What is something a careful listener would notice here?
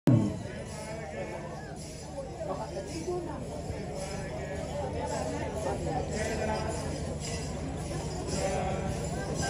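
A large crowd sings and chants together outdoors.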